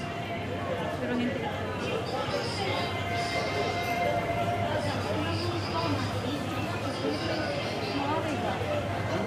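A crowd of men and women murmur and chatter in a large, busy indoor space.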